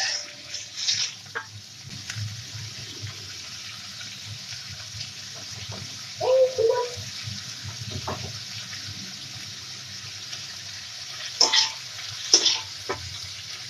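A metal spatula scrapes against a wok.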